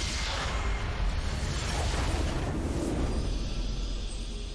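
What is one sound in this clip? A game's base explodes with a loud rumbling blast.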